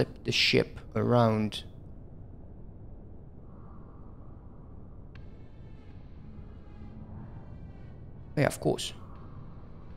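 A man speaks briefly and casually into a nearby microphone.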